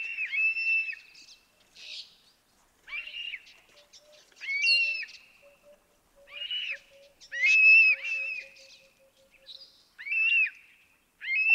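A bird of prey gives loud, repeated shrill whistling calls close by.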